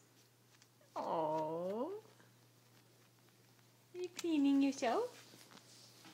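A guinea pig squeals loudly in short high bursts, close by.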